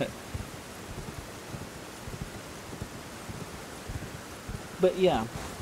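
Hooves thud at a steady gallop on stone.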